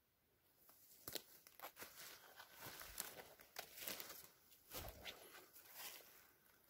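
Footsteps crunch through dry undergrowth and leaves.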